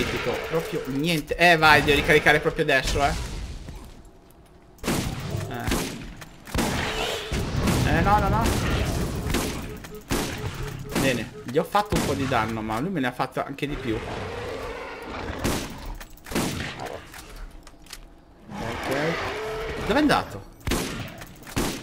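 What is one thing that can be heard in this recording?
A monster roars and growls.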